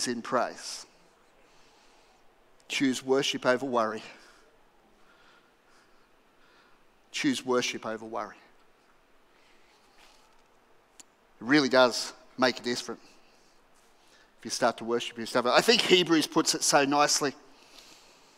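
A middle-aged man speaks calmly into a headset microphone, in bursts with pauses.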